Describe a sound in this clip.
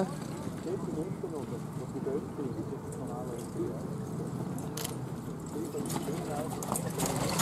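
A horse's hooves thud on soft grass.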